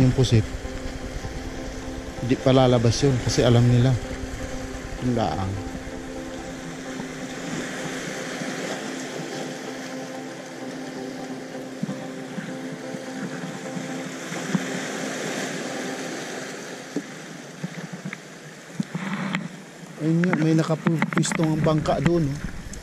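Small waves lap and splash against rocks on a shore.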